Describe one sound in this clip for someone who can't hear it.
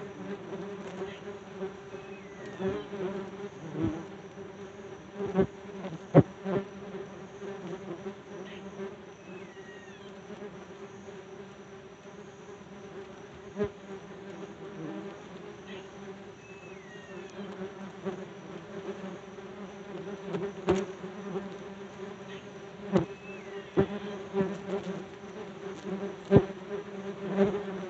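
Leaves rustle softly in a light breeze.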